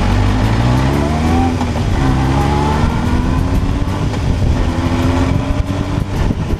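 Motorcycles behind rev their engines, rising in pitch.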